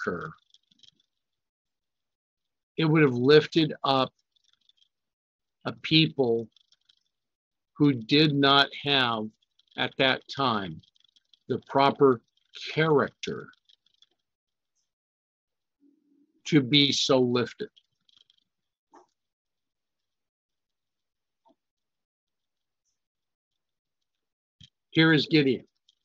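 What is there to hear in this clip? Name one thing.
A middle-aged man speaks calmly over an online call, in short phrases with pauses.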